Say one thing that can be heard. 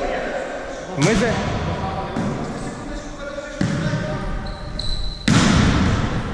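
A volleyball is struck with loud smacks.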